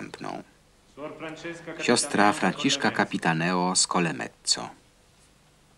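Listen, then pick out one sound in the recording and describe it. A man reads aloud in a steady voice.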